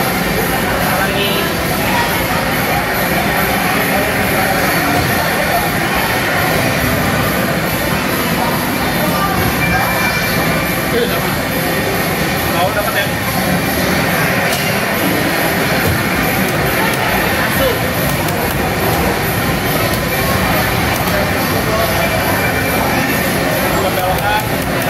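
Game music plays loudly through loudspeakers.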